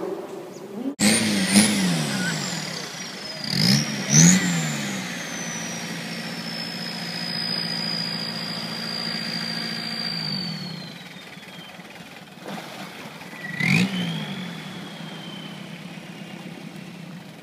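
A longtail boat's long-shaft engine revs and runs over water.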